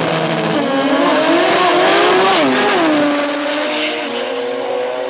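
Two race cars launch and roar away into the distance.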